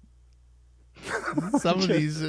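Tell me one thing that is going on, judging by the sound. Two men laugh into microphones.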